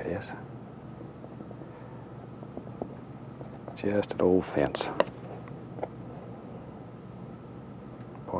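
A palette knife scrapes and taps softly against a canvas.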